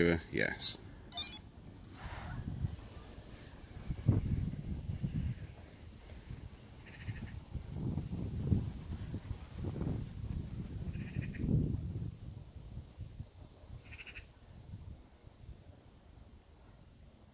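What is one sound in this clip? Wind rumbles outdoors in gusts.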